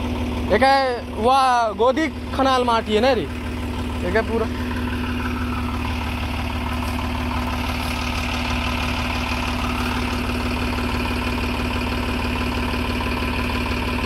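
A tractor engine runs with a steady, low rumble.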